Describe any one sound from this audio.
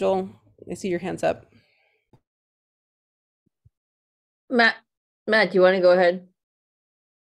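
A woman speaks through an online call, in short bursts.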